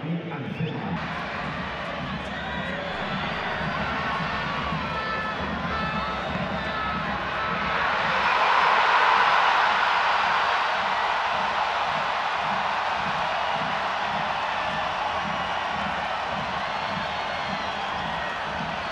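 A large crowd roars and cheers in a stadium, swelling loudly for a moment.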